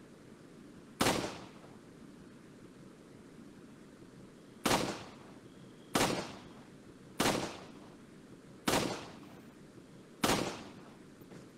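A pistol fires single shots that echo down a tunnel.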